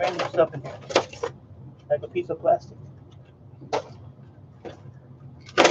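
Hands rummage through loose parts in a plastic tub, with light clicks and rattles.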